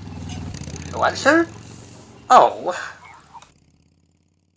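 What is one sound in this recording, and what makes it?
A cartoon cat meows loudly.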